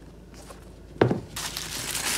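A shoe thumps onto a hard surface.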